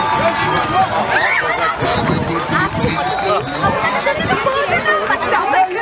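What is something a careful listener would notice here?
A crowd of spectators calls and cheers from a distance.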